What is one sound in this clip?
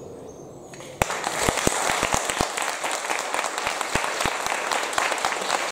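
An audience applauds and claps.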